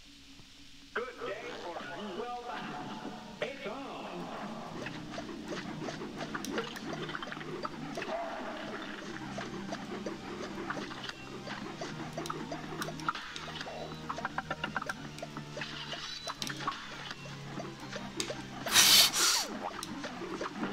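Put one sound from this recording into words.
Rapid cartoon shots pop and crackle.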